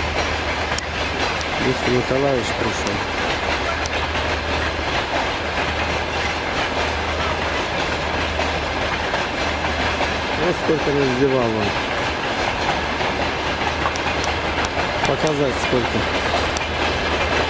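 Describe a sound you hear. A long freight train rumbles and clatters steadily past nearby.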